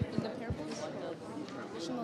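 A young person speaks through a microphone in an echoing hall.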